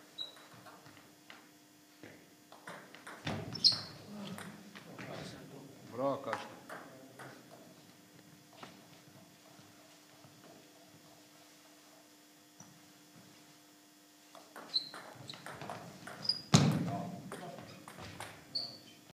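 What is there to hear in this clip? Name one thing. A table tennis ball clicks back and forth off paddles and a table in an echoing hall.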